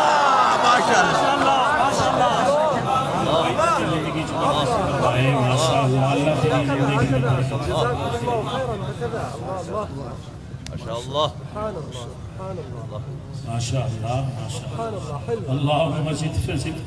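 A man sings a chant loudly into a microphone.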